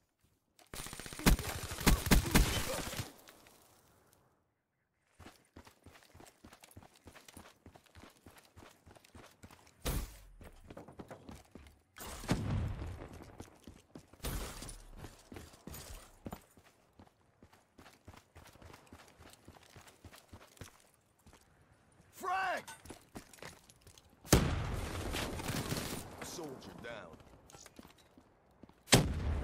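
Gunshots fire in rapid, loud bursts.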